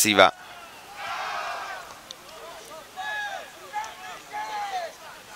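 Young men shout in the distance outdoors.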